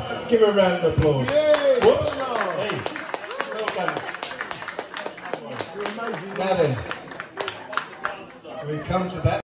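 People nearby clap their hands.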